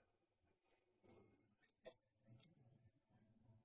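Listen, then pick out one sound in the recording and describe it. Scissors snip flower stems.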